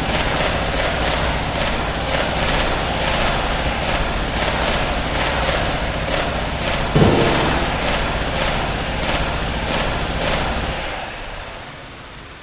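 Rapid electric zapping shots fire over and over.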